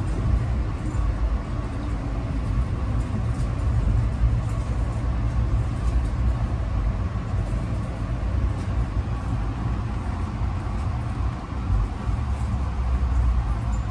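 Rain patters against a window.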